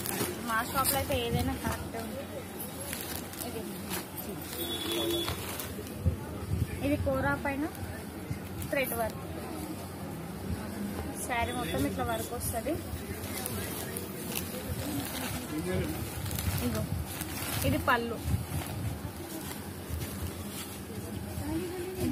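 Cloth and plastic wrapping rustle as they are handled.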